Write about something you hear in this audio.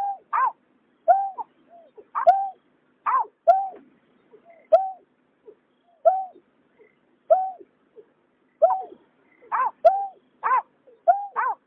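Birds give repeated hollow, hooting calls close by.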